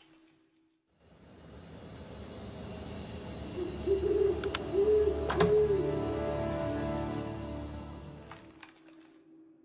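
A metal lock mechanism clicks and turns.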